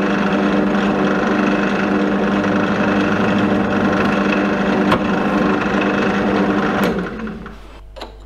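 A drill press motor hums and whirs, then stops.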